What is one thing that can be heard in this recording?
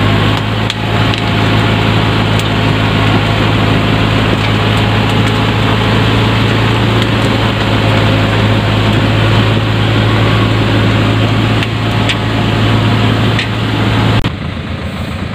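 A truck engine idles with a steady low hum close by.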